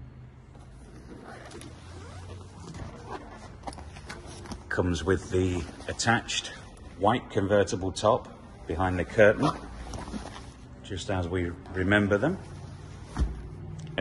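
A vinyl cover rustles and crinkles as it is pulled back.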